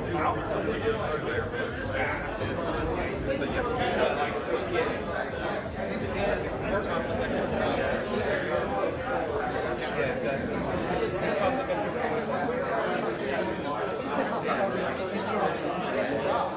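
A crowd of men and women chatters all around in a large, busy hall.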